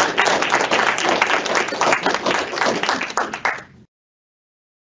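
A small group of people applaud, then the clapping stops abruptly.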